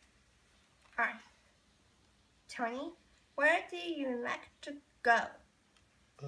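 A teenage girl reads a question out from a card, close by.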